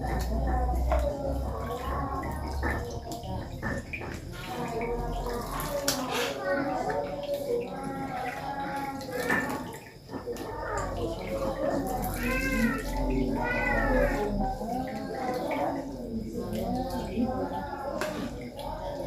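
Hands rub and swish rice in water.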